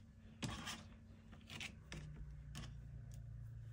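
Soft rubbery blocks tap and rustle lightly on a table.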